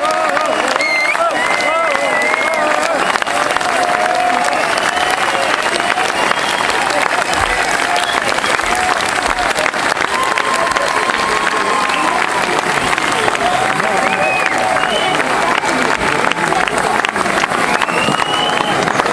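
A crowd claps hands steadily.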